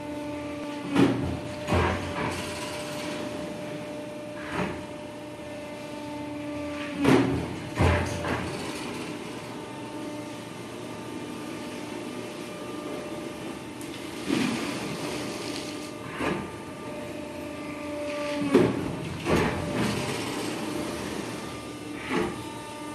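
A cutting press thumps down with loud clunks.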